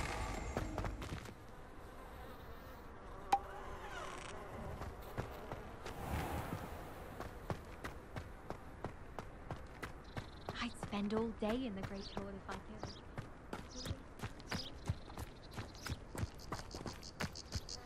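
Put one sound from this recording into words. Footsteps run quickly on stone paving.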